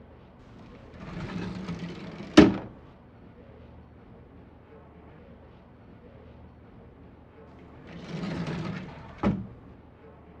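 A wooden drawer slides open and shut with a thump.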